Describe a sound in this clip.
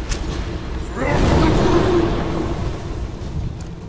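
A blast of frost rushes and roars.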